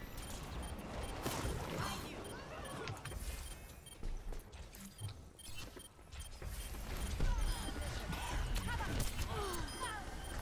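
Video game gunfire and effects play steadily.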